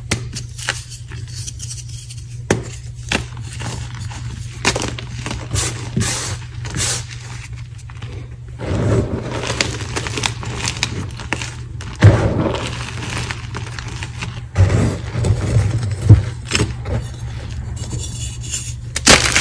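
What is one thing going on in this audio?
Chalk blocks crumble and snap between fingers.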